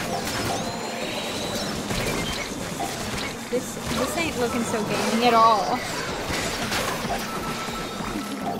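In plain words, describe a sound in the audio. Video game effects splatter, pop and burst throughout.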